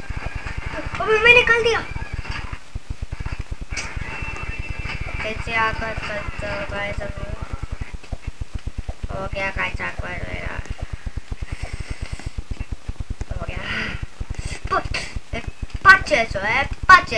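A young boy talks with animation into a nearby microphone.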